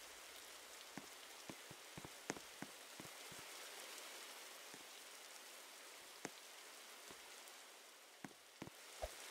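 Small footsteps patter on a wooden floor.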